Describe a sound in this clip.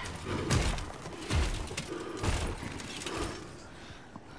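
Heavy armoured footsteps thud slowly.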